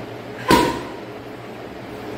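A gloved fist thuds against a heavy punching bag.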